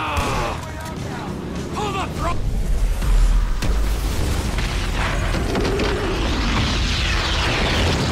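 A shotgun fires.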